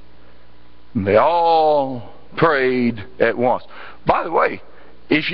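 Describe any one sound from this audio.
A man speaks slowly and deliberately through a microphone in a large room.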